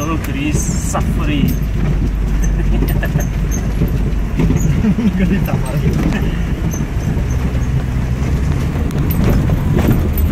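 Tyres crunch and bump over a rough dirt track.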